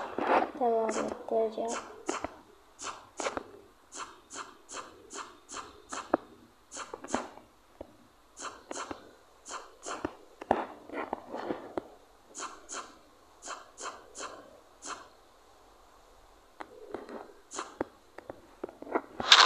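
Footsteps patter quickly on hard blocks.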